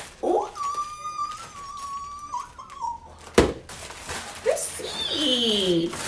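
Plastic packaging crinkles in a woman's hands.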